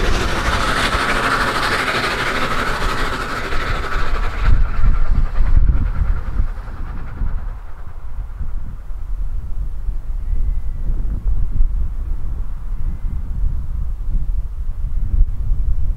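Strong wind gusts and rumbles outdoors.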